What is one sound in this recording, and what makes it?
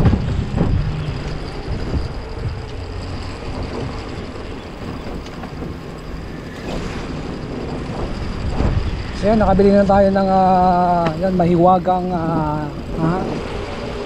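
Wind rushes past.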